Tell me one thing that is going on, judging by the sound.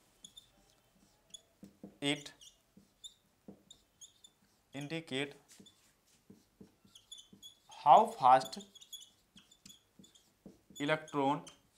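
A marker squeaks and taps on a whiteboard.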